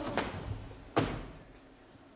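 Dancers' boots stamp.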